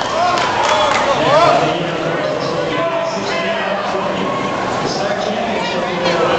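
A swimmer splashes through the water.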